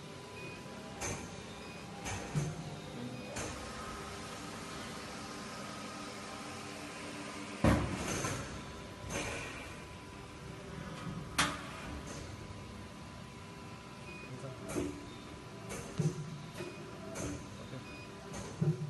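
Metal parts clack and thump inside a machine.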